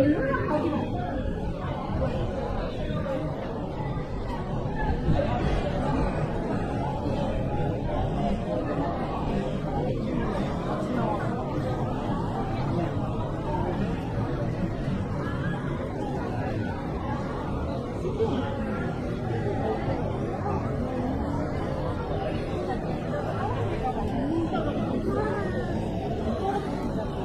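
Footsteps shuffle on pavement nearby.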